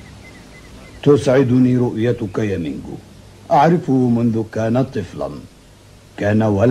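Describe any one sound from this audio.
An elderly man speaks firmly and calmly, close by.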